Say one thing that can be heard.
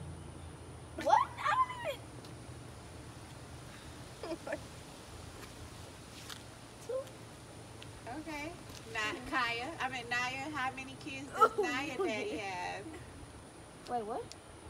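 Young girls talk and laugh excitedly close by.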